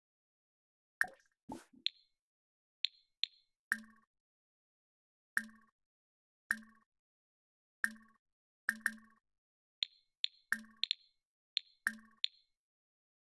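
Short game menu chimes sound again and again.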